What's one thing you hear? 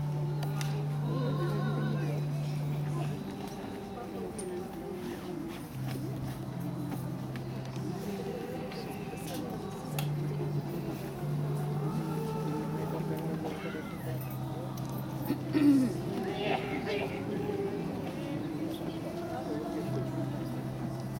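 A seated crowd murmurs and talks quietly nearby.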